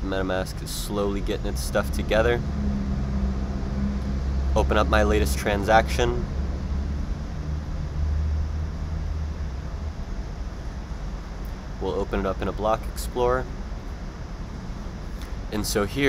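A man speaks casually into a close microphone, in short bursts with pauses.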